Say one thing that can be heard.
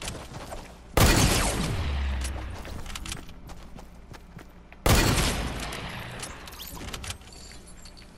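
Loud gunshots boom and echo away.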